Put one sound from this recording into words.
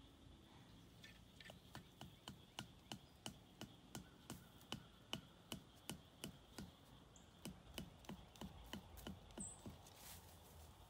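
A man digs into the ground with quick, repeated strokes.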